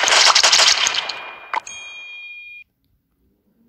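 A game chimes a short failure jingle.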